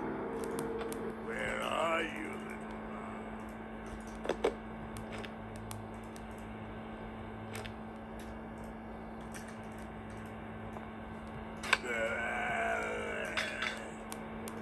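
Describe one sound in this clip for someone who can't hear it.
Fingers tap on a touchscreen.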